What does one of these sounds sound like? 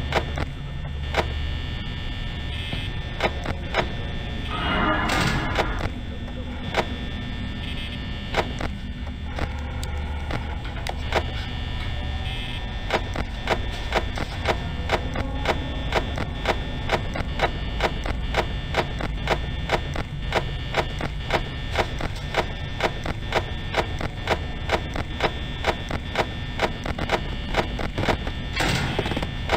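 A desk fan whirs steadily.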